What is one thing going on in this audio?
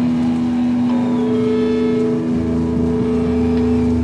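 A singer sings into a microphone over loudspeakers.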